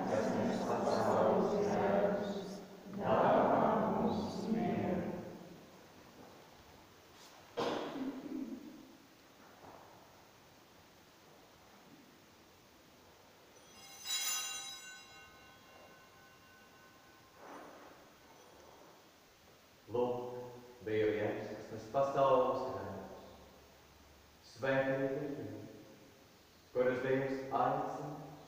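A man chants and sings prayers in an echoing church.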